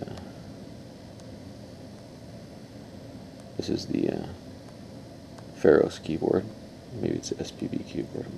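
A fingertip taps lightly on a phone's touchscreen.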